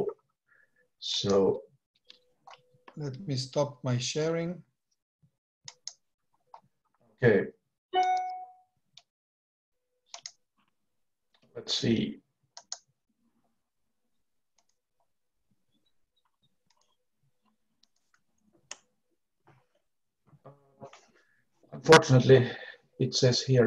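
A middle-aged man speaks calmly over an online call, with long pauses.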